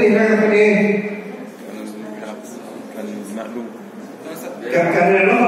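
A man speaks steadily through a microphone in a large echoing room.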